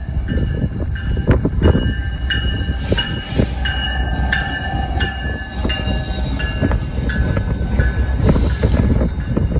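A train horn sounds in long blasts as the train approaches.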